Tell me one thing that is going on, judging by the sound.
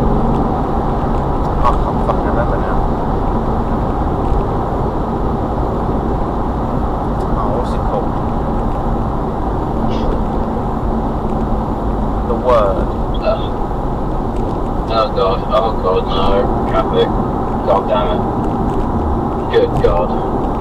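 A car drives steadily along a road, its engine and tyres rumbling inside.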